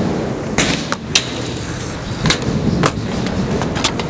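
A kick scooter clatters as it lands on concrete.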